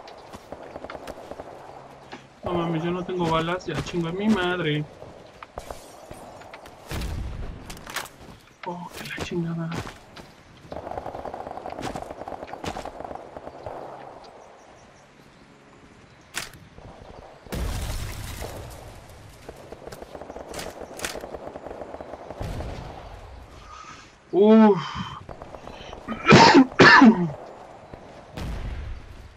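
Gunshots fire in short bursts in a video game.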